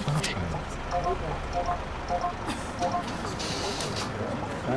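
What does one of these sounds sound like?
A ticket machine beeps several times.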